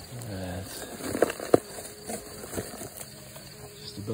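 A cardboard box scrapes and bumps as it is handled.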